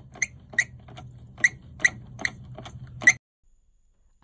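A plastic valve cap clicks sharply as a wrench turns it.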